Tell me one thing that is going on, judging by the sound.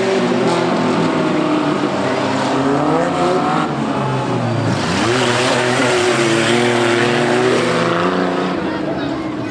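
Car engines roar and rev loudly.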